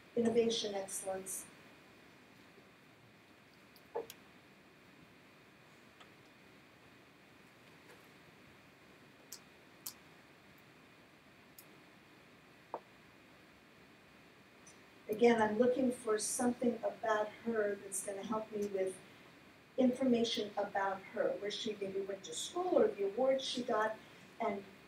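A woman speaks into a microphone in a large room, pausing now and then.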